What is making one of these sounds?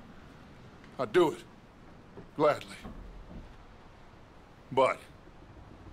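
A second man answers in a low, rough voice.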